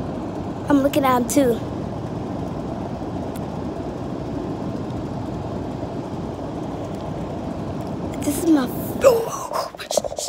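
An air conditioner hums steadily close by.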